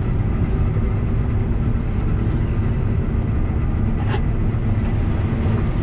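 Dry corn stalks crackle as a combine harvester cuts through them.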